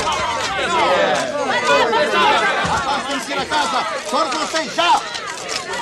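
A crowd of men and women shout excitedly over one another close by.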